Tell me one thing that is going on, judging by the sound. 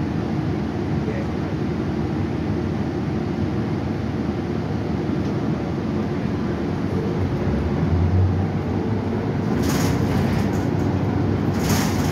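A bus engine rumbles steadily as the bus drives.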